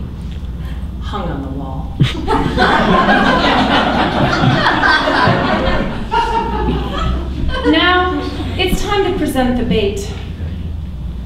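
A woman speaks with animation, her voice a little distant.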